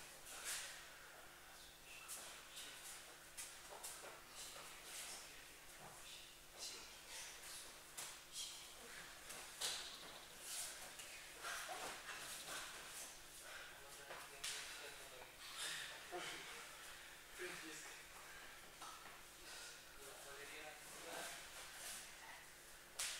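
Bare feet shuffle and thump on a padded mat.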